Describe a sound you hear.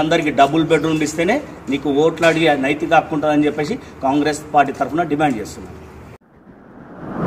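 A middle-aged man speaks forcefully and with animation close to a microphone.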